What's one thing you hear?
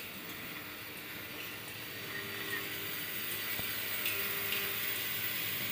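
Small metal parts clink as they slide along a feed track.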